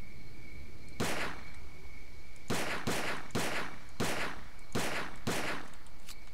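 A pistol fires several loud shots in quick succession.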